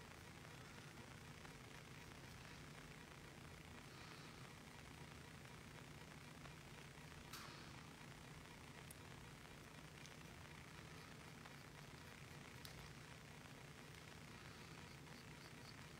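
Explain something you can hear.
A small brush strokes softly across an eyebrow.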